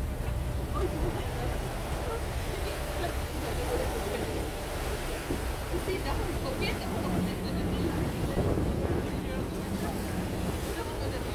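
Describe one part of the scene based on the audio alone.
Wind rumbles and buffets steadily outdoors.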